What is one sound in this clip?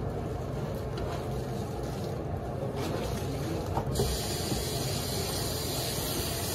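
Wet soapy cloth squelches as hands scrub it.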